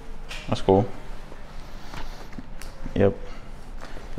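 A heavy suit rustles and flaps as a man handles it.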